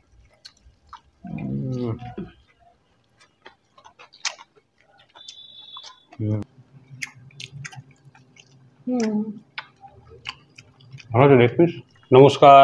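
Hands eat rice with soft smacking.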